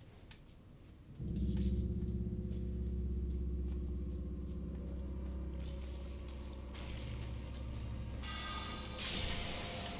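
Footsteps tread on stone, echoing in a large hall.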